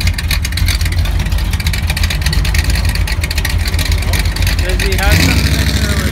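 An old pickup truck's engine idles with a deep rumble.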